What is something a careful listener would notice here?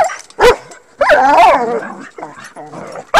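A dog whines.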